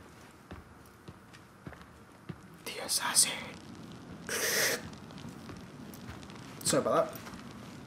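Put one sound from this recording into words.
Footsteps tap on a stone floor in a large echoing hall.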